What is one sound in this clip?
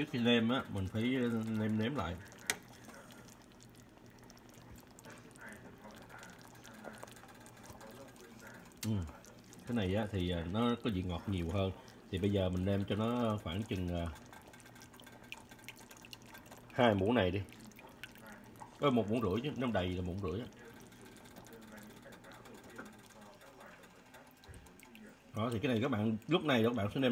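Broth simmers gently in a pot.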